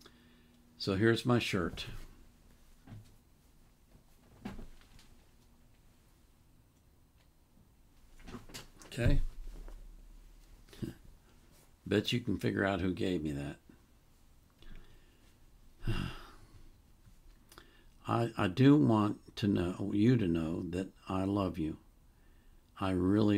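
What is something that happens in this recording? An elderly man talks calmly and close, in short bursts with pauses.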